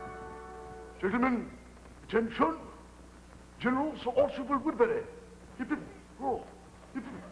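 A man speaks theatrically in short, exaggerated bursts.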